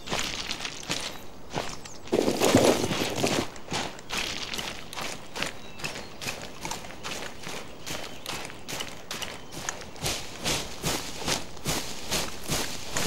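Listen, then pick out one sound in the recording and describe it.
Footsteps swish through tall grass at a steady walking pace.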